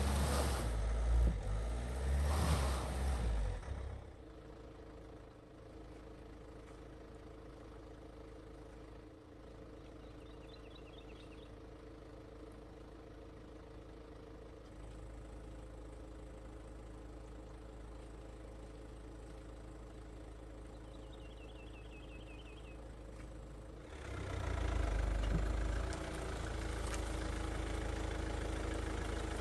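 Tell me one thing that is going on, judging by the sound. Tyres spin and splash in wet mud.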